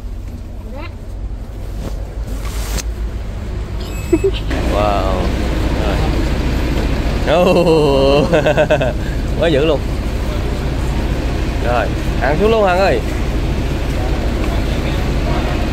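A bus engine idles with a low steady hum.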